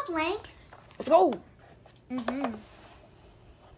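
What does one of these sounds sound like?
Plastic toy parts knock and rattle softly.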